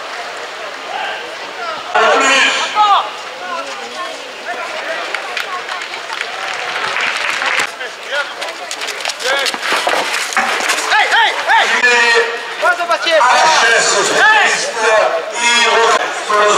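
A large outdoor crowd murmurs and cheers.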